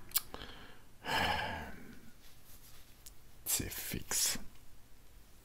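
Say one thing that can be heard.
A man talks quietly close to a microphone.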